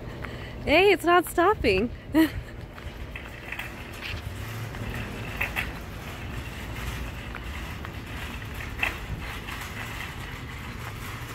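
A shopping cart rattles as its wheels roll over asphalt.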